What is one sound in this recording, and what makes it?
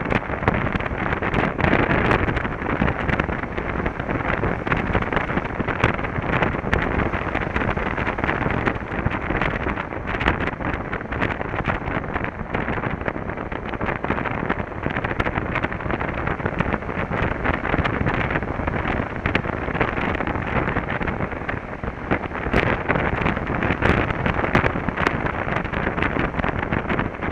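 A motorcycle engine hums steadily.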